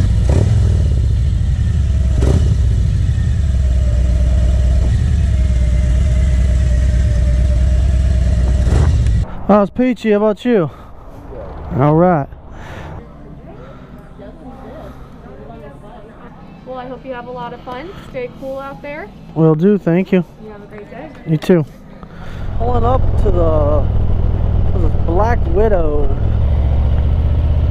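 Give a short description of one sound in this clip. A motorcycle engine rumbles close by as it rides.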